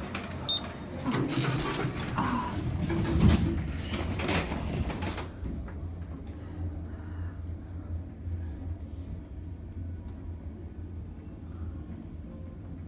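An escalator hums steadily in a large echoing hall.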